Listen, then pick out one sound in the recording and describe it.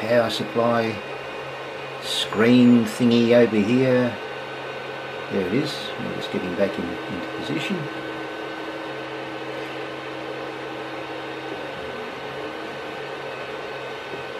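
A 3D printer's motors hum and whir steadily.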